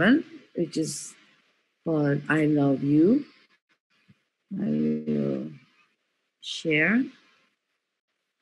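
A middle-aged woman speaks slowly and thoughtfully over an online call.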